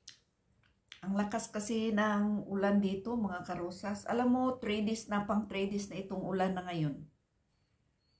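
A middle-aged woman speaks calmly and close to a microphone.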